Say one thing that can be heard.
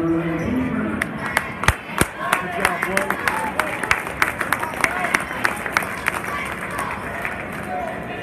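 Hands clap sharply in a rhythm.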